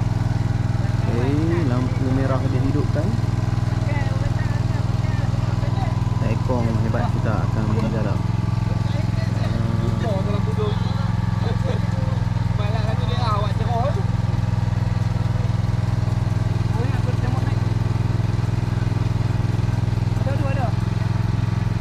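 Men talk casually nearby, in short bursts.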